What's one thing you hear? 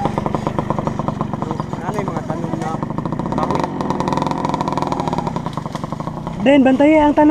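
A dirt bike engine revs and sputters nearby.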